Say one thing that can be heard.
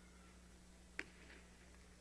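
A ball smacks hard against a wall.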